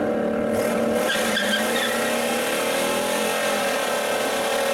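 Tyres squeal and spin on the pavement.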